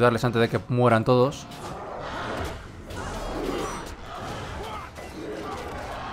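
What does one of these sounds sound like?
Weapons clash and magic blasts crackle in a battle.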